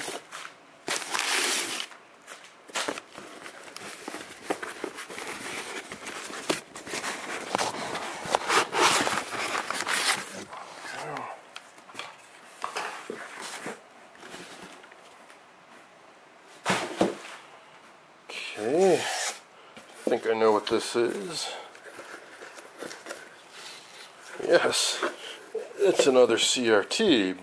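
Cardboard scrapes and rustles.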